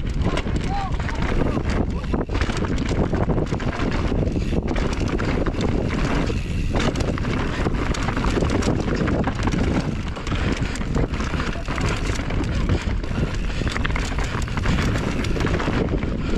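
Bicycle tyres rumble and crunch over a rough dirt trail at speed.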